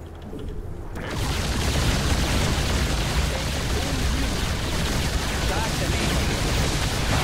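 Video game gunfire and explosions rattle loudly.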